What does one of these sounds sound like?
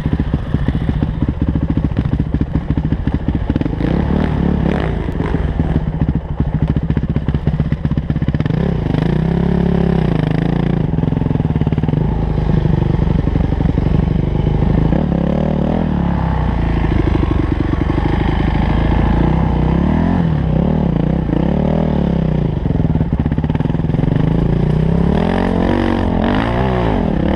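A dirt bike engine revs and roars up and down close by.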